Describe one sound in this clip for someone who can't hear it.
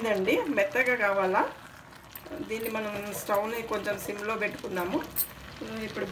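A spoon stirs thick porridge in a metal pot.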